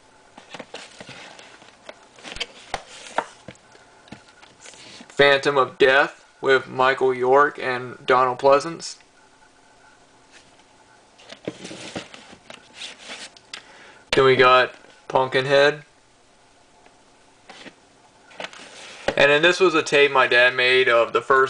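Plastic tape cases slide and clack against each other.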